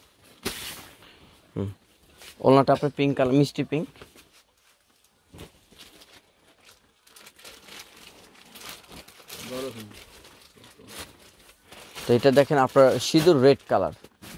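Heavy fabric rustles as it is unfolded and lifted.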